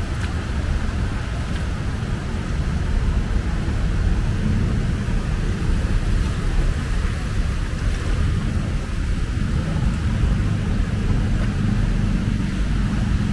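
Shallow water trickles along a flooded street.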